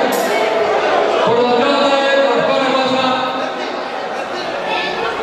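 A crowd of men and women chatters loudly in a large echoing hall.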